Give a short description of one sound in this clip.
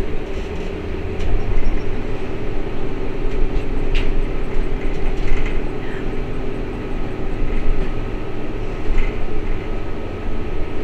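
Loose fittings rattle and clatter inside a moving bus.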